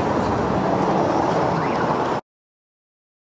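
Outdoor street bustle murmurs.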